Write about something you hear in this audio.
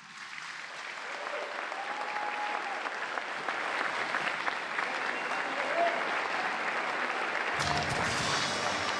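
A large crowd cheers and whoops.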